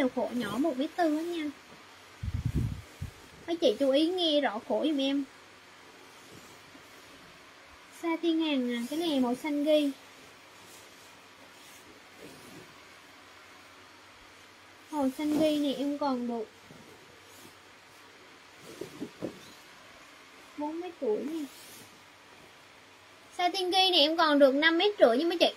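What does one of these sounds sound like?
A young woman talks close by, with animation, in short bursts.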